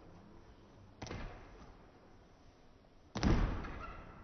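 Bare feet thud as a girl lands on a wooden balance beam.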